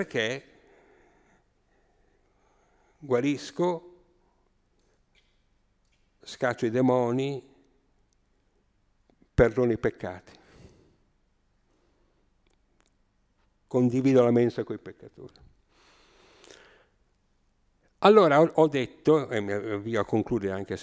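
An elderly man speaks with animation into a microphone, pausing between phrases.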